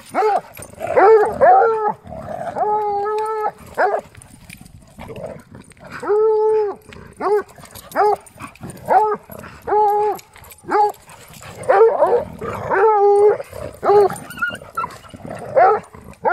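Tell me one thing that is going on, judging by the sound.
Dogs growl while playing rough.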